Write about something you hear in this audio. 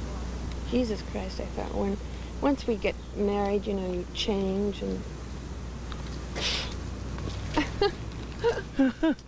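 A woman speaks softly and closely in a quiet, lilting voice.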